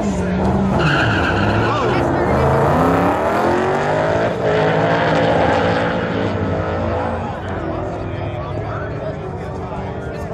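Two cars accelerate hard and roar away into the distance.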